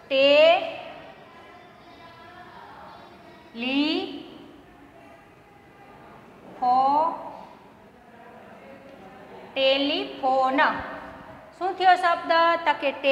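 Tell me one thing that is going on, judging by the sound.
A woman speaks loudly in drawn-out, rising phrases.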